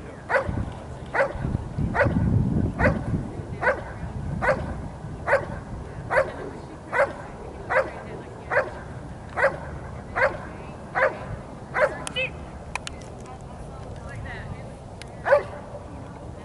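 A dog barks loudly and steadily, again and again, outdoors.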